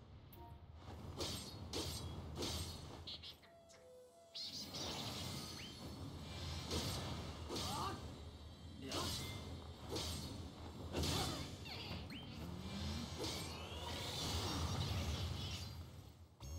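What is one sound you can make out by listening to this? Sword strikes and magic blasts crash again and again in a game battle.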